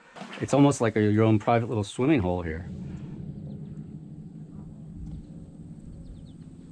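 Water laps gently nearby.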